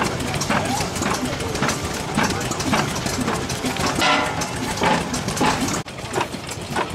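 A steam engine chugs nearby.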